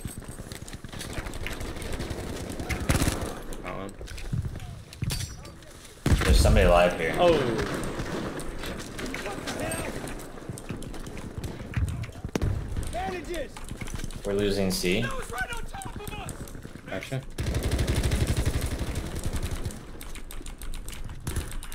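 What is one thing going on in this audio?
Gunfire crackles in short bursts nearby.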